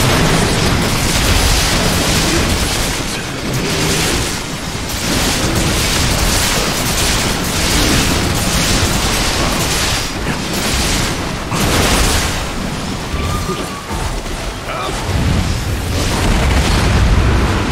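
Blades clash and strike a creature in quick blows.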